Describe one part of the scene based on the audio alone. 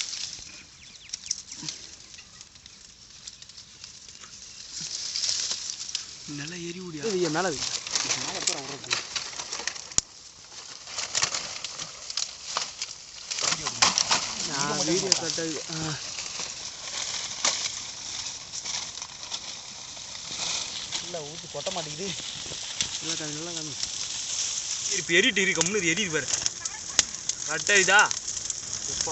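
Fire crackles and pops as dry leaves burn.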